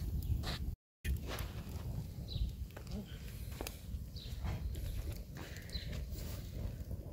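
A wood fire crackles and pops close by.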